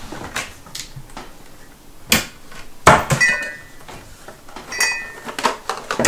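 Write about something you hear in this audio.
A cupboard door bangs open and shut.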